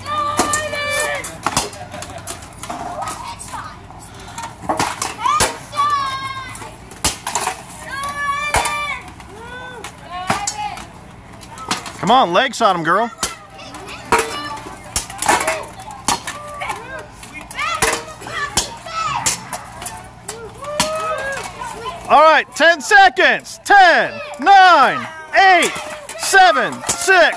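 Weapons clash against shields and armour with sharp metallic knocks.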